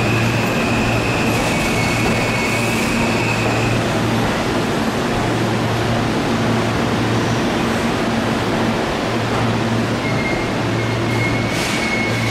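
A train rolls slowly past along a platform, rumbling.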